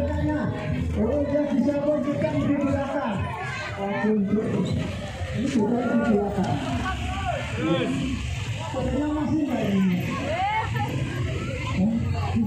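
A crowd of men and women talks and calls out nearby, outdoors.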